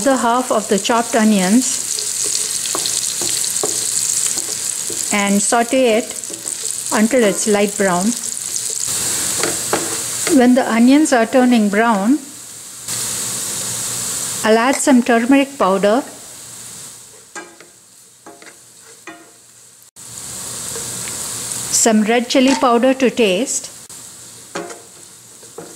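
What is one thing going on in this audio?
A wooden spoon scrapes and taps against a pan.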